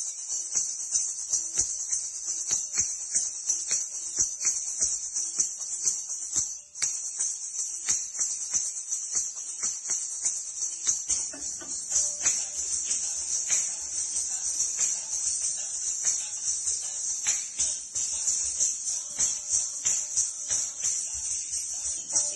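Ankle bells jingle rhythmically with each step.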